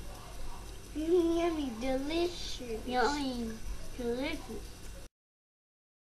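A young child talks close by with animation.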